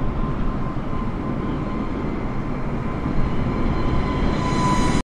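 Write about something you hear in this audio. A jet airliner's engines roar and whine, growing louder as the plane passes close overhead.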